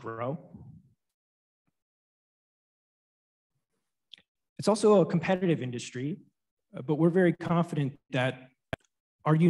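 A man speaks steadily in a presentation, heard through a microphone.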